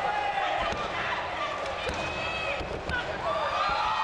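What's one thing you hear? A referee slaps the mat.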